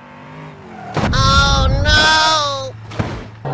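Two cars collide with a loud metallic crunch.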